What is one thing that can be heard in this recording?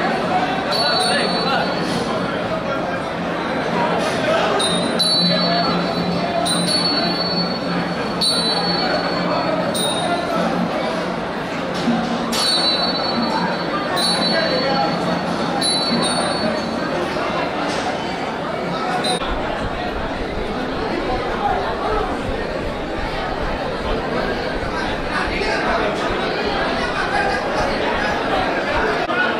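A large crowd murmurs and calls out loudly in an echoing hall.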